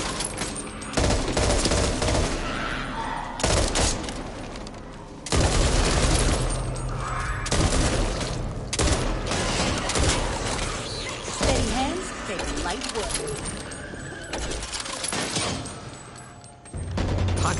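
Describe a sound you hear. Gunshots blast loudly in sudden bursts, echoing in a tunnel.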